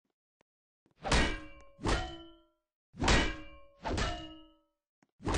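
Sharp ringing game hits strike in four bursts.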